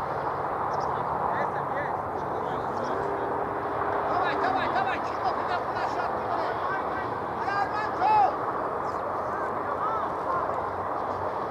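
Men shout to each other from a distance across an open field outdoors.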